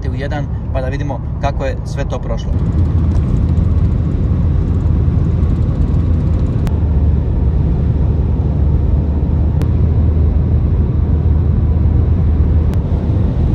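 A car's engine and tyres rumble steadily at highway speed.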